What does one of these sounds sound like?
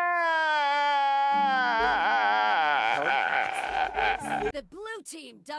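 A man wails and sobs loudly and close by.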